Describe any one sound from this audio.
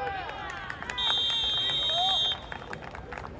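A referee blows a loud, long whistle.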